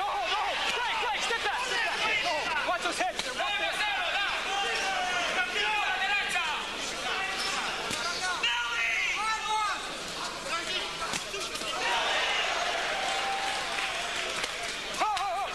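Boxing gloves thud against bodies.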